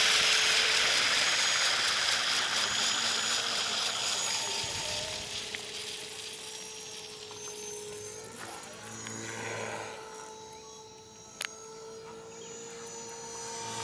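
A small electric motor whines steadily.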